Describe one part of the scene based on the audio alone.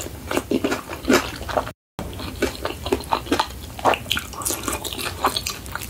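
Crispy fried chicken crackles as hands tear it apart.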